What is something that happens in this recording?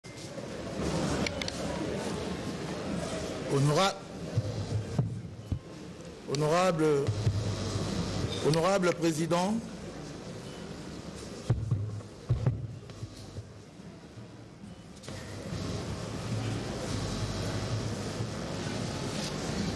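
A crowd murmurs and chatters noisily in a large echoing hall.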